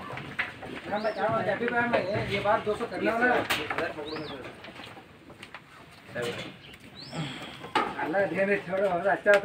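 Goats bleat close by.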